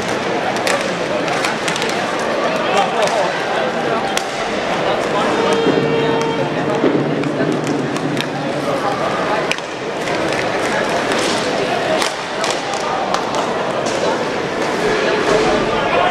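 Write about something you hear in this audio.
Hockey sticks click sharply against a puck.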